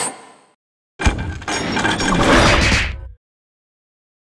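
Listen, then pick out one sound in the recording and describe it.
A magic spell bursts with a loud rushing whoosh.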